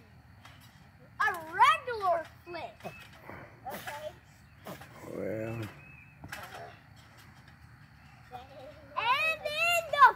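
A trampoline mat creaks and thumps as a child climbs and jumps on it.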